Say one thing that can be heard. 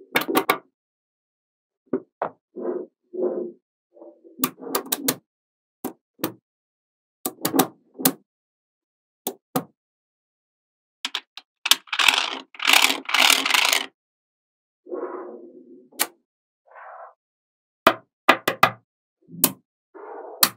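Small magnetic balls click and snap together.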